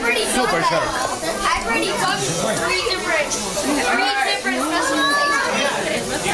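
A group of children sing together loudly and close by.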